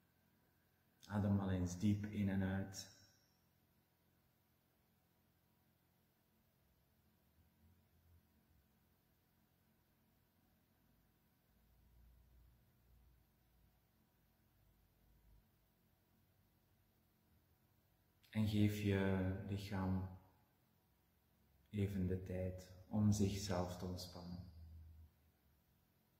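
A man speaks slowly and calmly close by, with long pauses.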